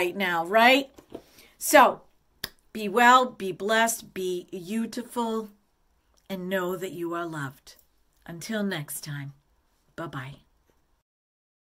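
An older woman speaks calmly and close by.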